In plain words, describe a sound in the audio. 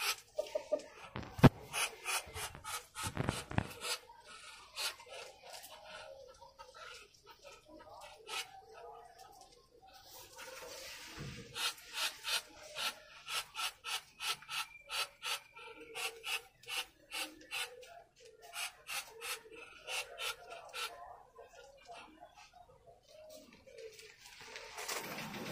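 Chickens cluck and chirp close by.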